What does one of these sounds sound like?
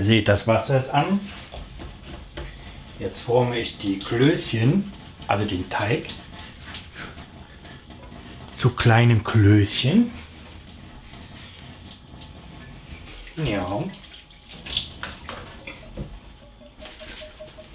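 Tap water runs into a sink.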